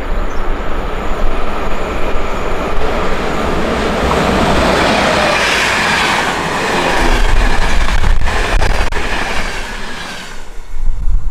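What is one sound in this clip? An electric train approaches and rushes past at speed with a loud roar.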